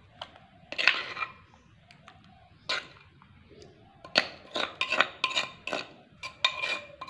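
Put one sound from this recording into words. A metal spoon scrapes and clinks against a clay pot.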